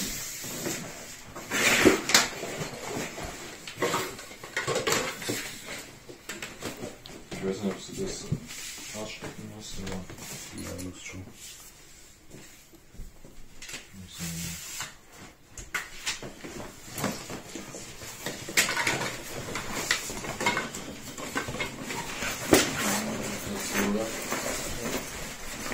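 Nylon fabric rustles and crinkles as a bag is handled.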